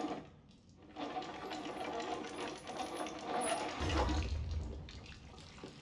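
A metal crank creaks and grinds as it turns.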